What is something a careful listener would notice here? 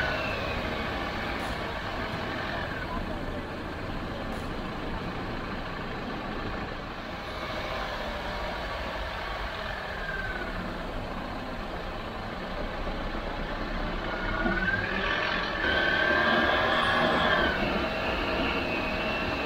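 Tyres roll and crunch over a dirt track.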